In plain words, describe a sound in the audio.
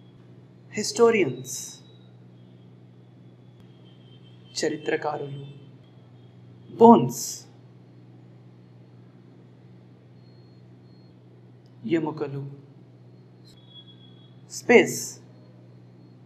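A man speaks clearly and calmly into a close microphone, in short bursts with pauses.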